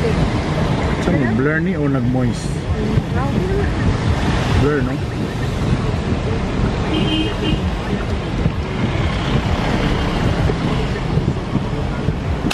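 Car tyres slosh through deep floodwater.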